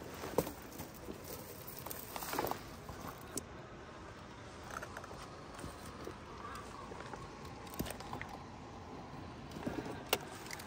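Plastic tyres scrape and knock on rock.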